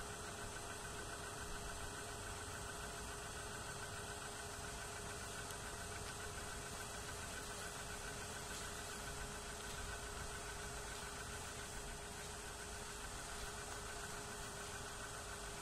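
A small boat motor hums steadily across the water.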